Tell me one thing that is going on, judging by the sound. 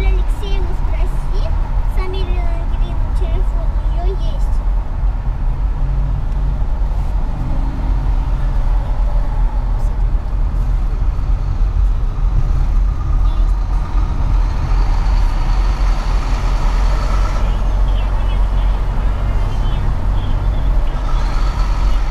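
Traffic rushes past on a busy highway.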